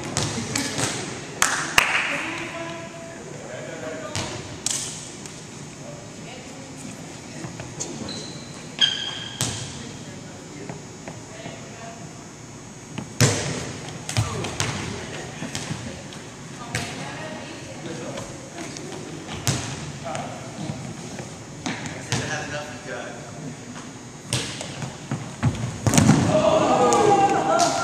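Volleyballs bounce and thud on a hard floor.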